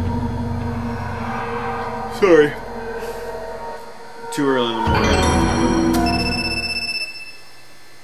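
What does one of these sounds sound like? Eerie game music plays loudly and then stops.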